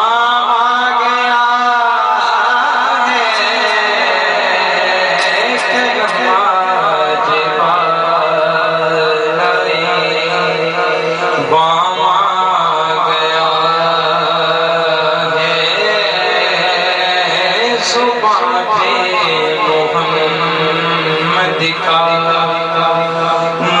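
A young man sings through a microphone over a loudspeaker.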